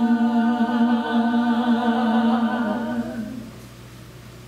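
Women sing together in harmony through microphones.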